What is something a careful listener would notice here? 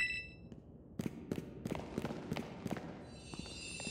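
Footsteps patter quickly on dirt.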